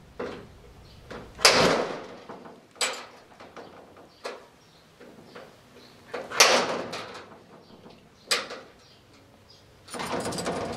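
Metal tools click and scrape inside a lock.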